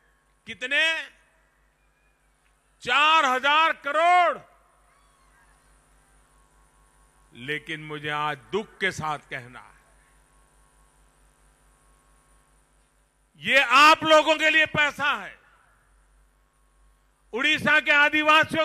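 An older man speaks forcefully into a microphone, amplified over loudspeakers outdoors.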